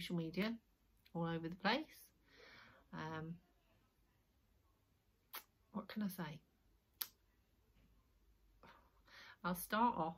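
A middle-aged woman talks calmly and close to the microphone, in short phrases with pauses.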